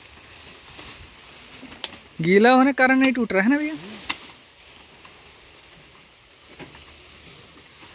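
A sickle cuts through dry stalks with rustling.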